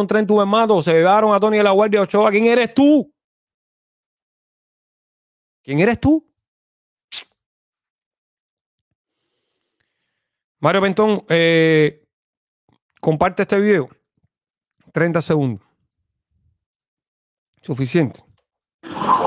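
A man speaks with animation into a close microphone, in short bursts with pauses.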